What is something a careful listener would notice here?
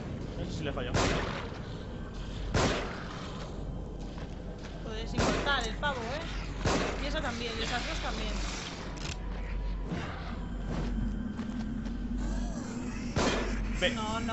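Gunshots ring out from a game.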